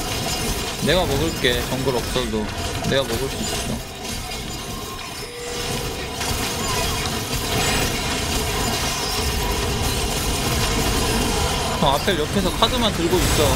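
Game battle effects crackle and whoosh steadily.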